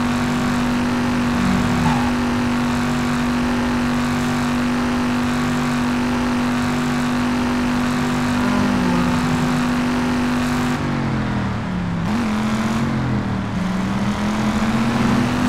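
A car engine roars steadily, shifting pitch as it changes speed.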